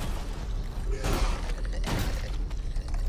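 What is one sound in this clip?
A monster screeches.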